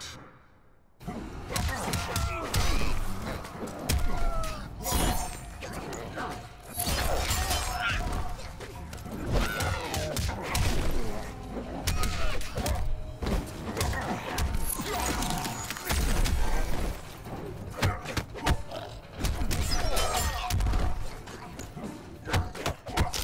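Fighters grunt and yell with effort.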